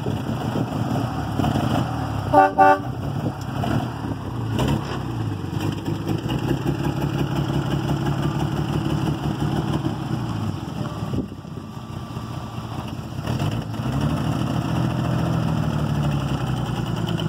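An old car engine idles with a low, uneven rumble.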